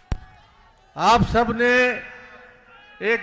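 A large crowd chants slogans loudly outdoors.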